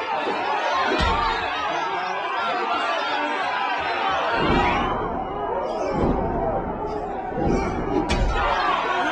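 Punches land with dull thuds.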